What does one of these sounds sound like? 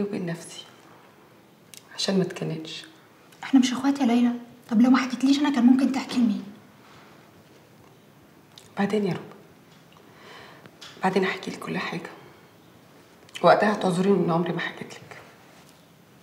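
A young woman speaks calmly and sadly, close by.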